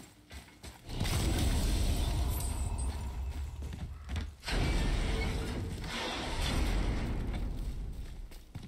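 A heavy gate grinds and rumbles as it is lifted.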